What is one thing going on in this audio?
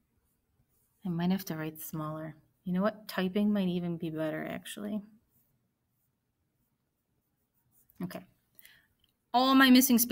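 A young woman explains calmly and closely into a microphone, in short bursts.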